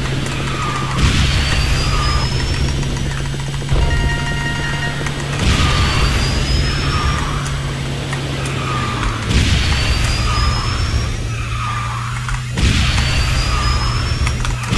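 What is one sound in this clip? Speed boosts whoosh in loud bursts every few seconds.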